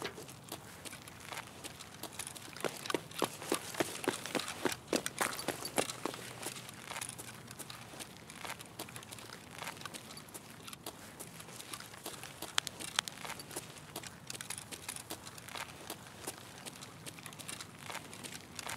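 Footsteps tap quickly on hard pavement.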